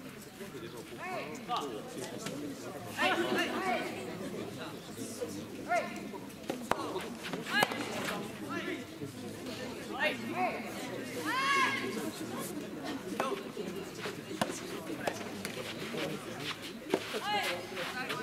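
Young men shout out on an open court.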